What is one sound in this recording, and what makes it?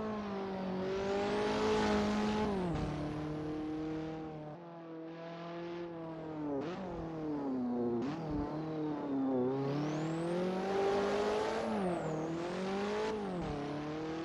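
Tyres squeal on tarmac through the bends.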